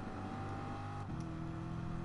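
A racing car engine briefly drops in pitch as it shifts gear.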